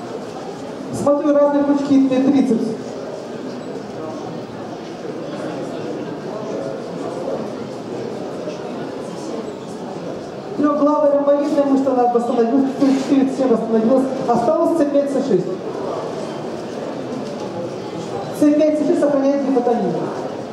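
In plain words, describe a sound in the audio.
A woman speaks with animation, amplified through a loudspeaker.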